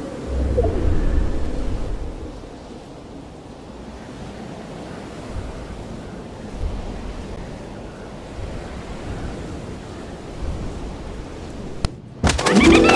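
Wind rushes steadily during a skydive.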